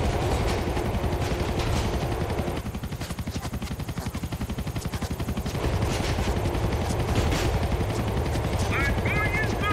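A helicopter's rotor blades chop overhead.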